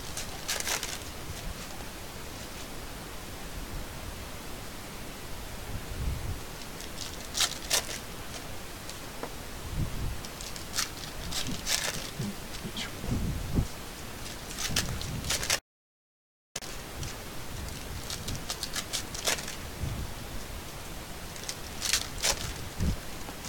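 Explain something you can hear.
Trading cards rustle and slide as they are shuffled by hand.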